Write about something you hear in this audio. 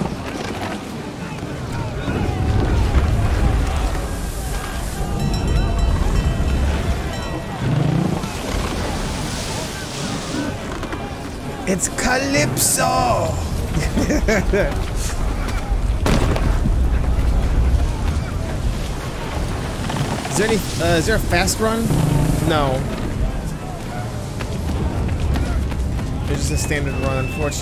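Heavy waves crash against a ship's hull.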